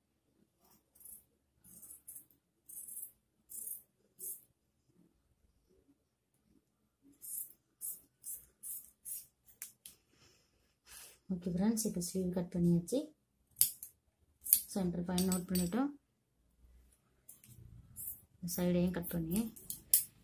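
Scissors snip through cloth in short bursts.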